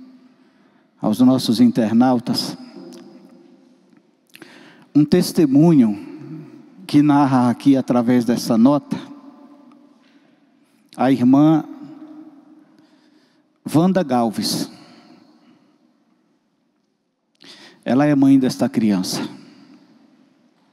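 A man speaks with emphasis into a microphone, in bursts with pauses, his voice ringing in a reverberant room.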